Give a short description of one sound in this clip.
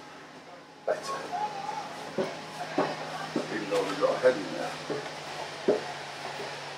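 Footsteps clang on metal stair treads, climbing up.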